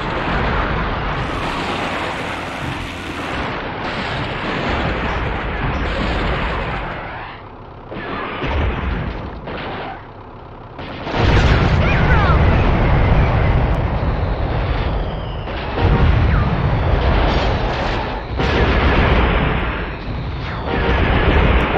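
An armoured vehicle's engine roars as it drives.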